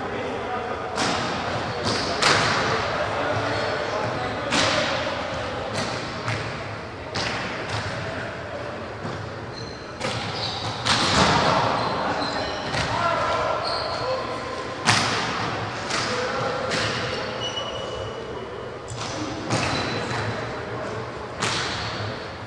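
A volleyball is struck hard with a loud slap in an echoing hall.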